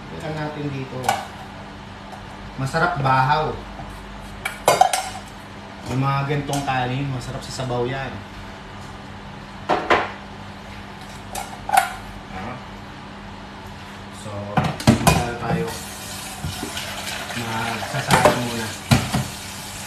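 Dishes and pots clank in a sink.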